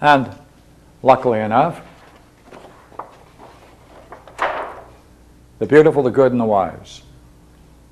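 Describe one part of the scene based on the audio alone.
An elderly man speaks calmly, in short phrases.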